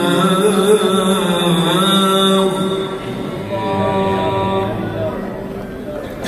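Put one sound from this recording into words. An elderly man chants in a long, drawn-out melodic voice through a loudspeaker in a large echoing hall.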